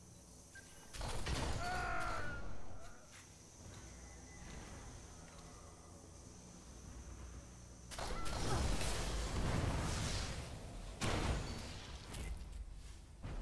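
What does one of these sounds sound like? Gunshots fire in bursts.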